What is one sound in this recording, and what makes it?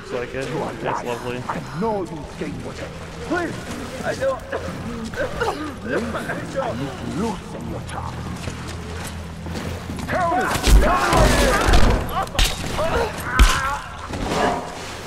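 Water splashes as someone wades through it.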